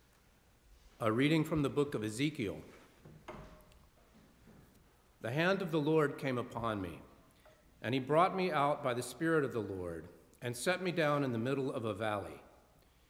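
A man reads aloud steadily through a microphone.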